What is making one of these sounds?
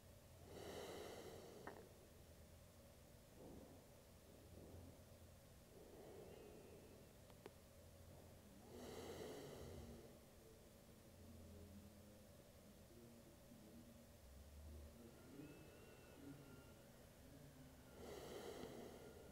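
A woman breathes slowly and deeply nearby.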